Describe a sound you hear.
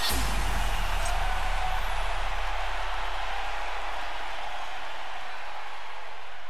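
A game sound effect bursts out and rings on with a bright shimmer.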